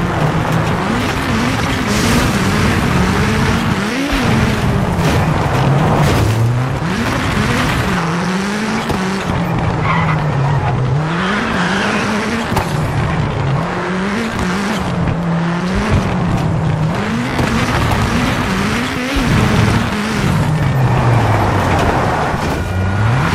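A rally car engine revs hard, rising and falling as gears shift.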